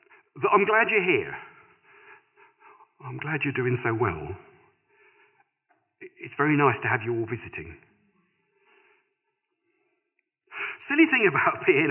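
A middle-aged man reads aloud slowly through a microphone, pausing between phrases.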